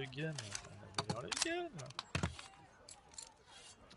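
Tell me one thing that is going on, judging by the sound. A pistol clicks as it is taken apart.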